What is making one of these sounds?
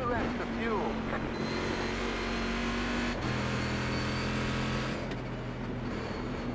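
A racing car engine drones loudly and shifts up through the gears.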